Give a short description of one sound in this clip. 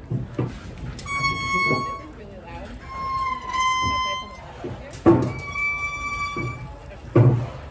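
A dog whines in high, drawn-out tones.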